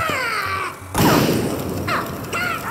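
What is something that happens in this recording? A loud explosion bursts with a heavy boom.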